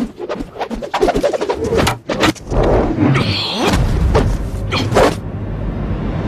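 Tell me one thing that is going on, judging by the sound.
A sword swishes through the air in quick strokes.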